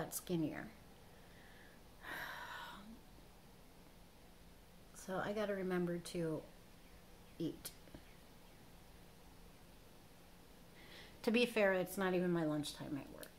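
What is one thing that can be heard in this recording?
A woman talks calmly close by, in short bursts.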